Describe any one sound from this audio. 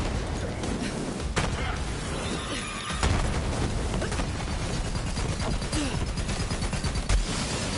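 Guns fire in rapid bursts.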